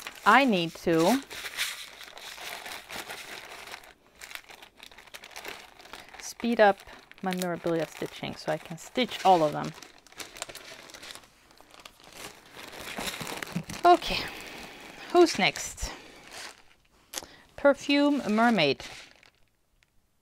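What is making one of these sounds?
Plastic bags crinkle and rustle as hands handle them.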